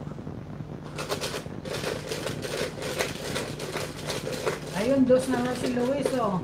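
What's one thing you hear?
A plastic container rattles as it is shaken.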